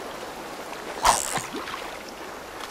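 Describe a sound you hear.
A fishing line is cast and lands in the water with a splash.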